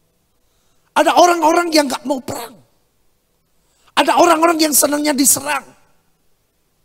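A middle-aged man speaks forcefully into a microphone in short bursts.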